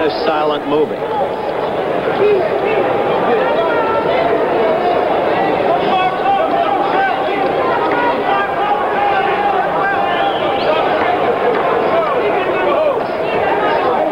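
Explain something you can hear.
A large crowd cheers and murmurs steadily.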